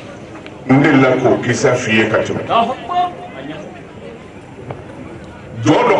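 A man speaks forcefully into a microphone, heard through a loudspeaker.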